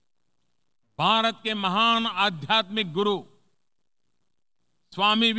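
An elderly man speaks formally into a microphone.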